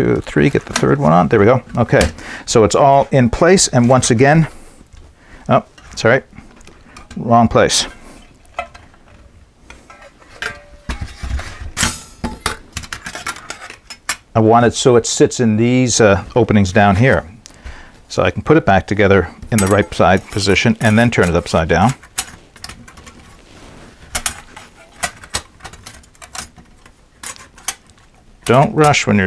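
Metal plates clink and rattle as they are handled and fitted together.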